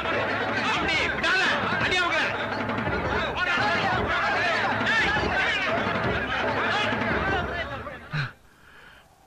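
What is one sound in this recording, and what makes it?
A crowd of people shouts excitedly.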